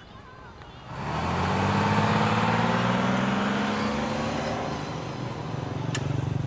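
A bus engine rumbles loudly as it passes close by.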